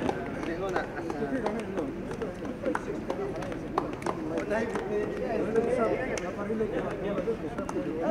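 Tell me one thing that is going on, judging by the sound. A crowd of men and women chatters nearby.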